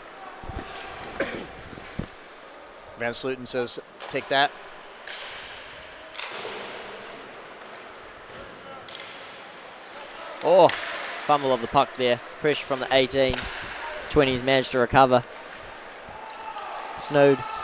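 Ice skates scrape and carve across the ice.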